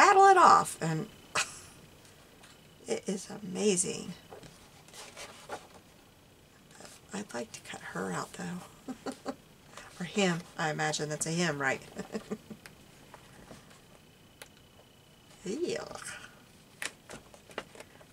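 Book pages rustle as they are turned by hand.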